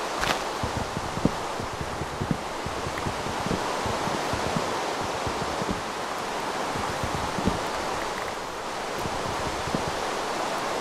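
Leaves crunch and break apart in quick bursts.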